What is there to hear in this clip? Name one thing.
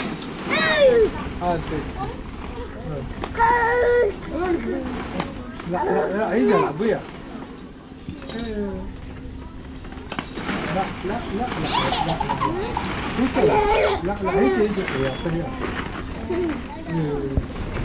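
Small children squeal and babble close by.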